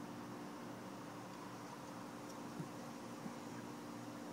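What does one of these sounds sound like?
A folding knife's blade clicks softly as it is handled.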